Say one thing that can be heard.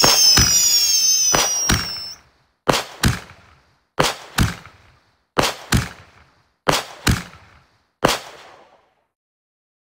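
Fireworks burst with sharp bangs in pairs, each fading with a crackle.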